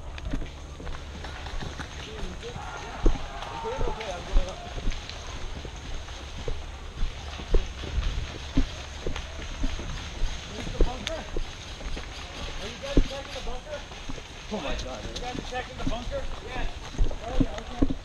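Footsteps crunch and thud on a dirt trail.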